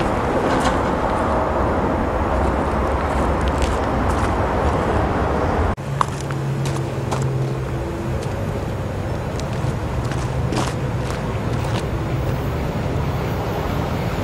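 A train rumbles along the tracks, approaching.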